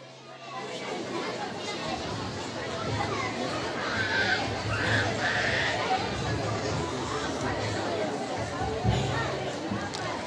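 An elderly man speaks through a microphone and loudspeakers in a large hall.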